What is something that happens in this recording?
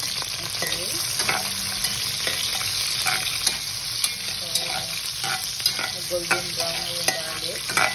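A spatula scrapes and clicks against a nonstick pan.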